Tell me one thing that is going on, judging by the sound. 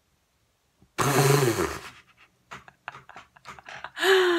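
A young woman laughs close up.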